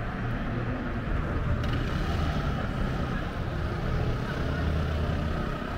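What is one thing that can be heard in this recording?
A motor scooter's engine hums nearby on the street.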